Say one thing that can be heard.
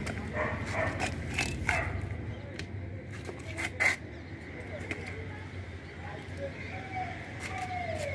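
Hands press and rustle soil in a pot.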